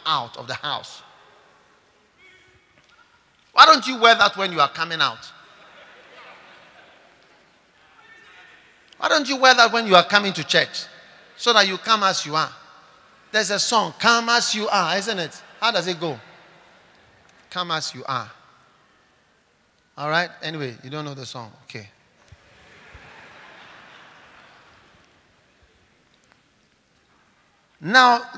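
A man speaks with animation into a microphone, in bursts with pauses, in a large echoing hall.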